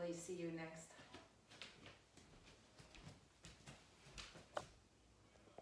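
Footsteps thud on a wooden floor as a woman walks away.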